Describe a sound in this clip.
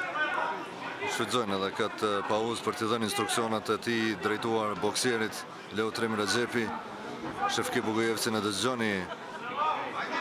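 A man talks loudly close by.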